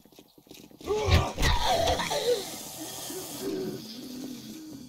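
A zombie growls and snarls close by.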